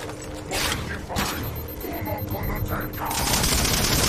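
A weapon fires rapid, shrill bursts.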